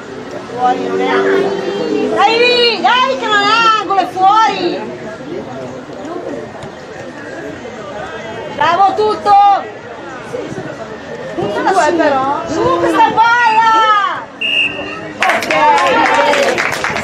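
Young players shout loudly to each other outdoors.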